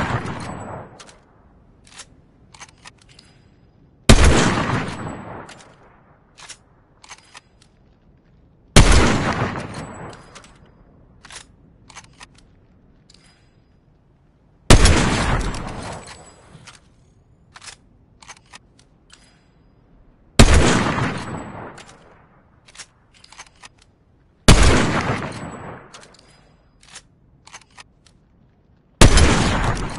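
Sniper rifle shots crack loudly and echo away.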